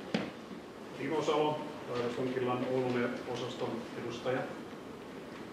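An elderly man speaks calmly in an echoing hall.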